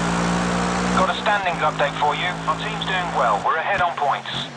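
Tyres screech on tarmac through the corners.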